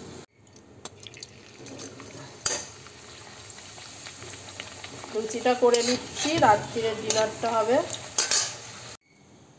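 A spoon scrapes against a metal pan.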